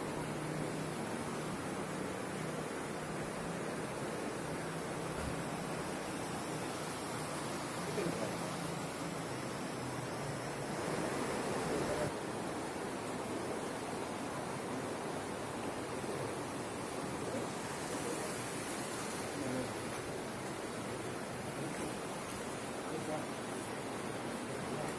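Water bubbles and gurgles steadily up through a shallow pool.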